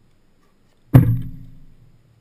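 A car door slams shut with a loud thud.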